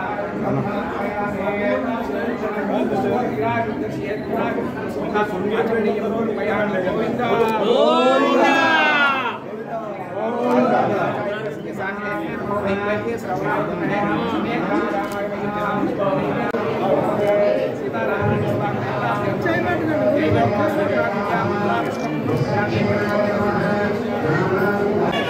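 A man chants prayers in a steady, rhythmic voice nearby.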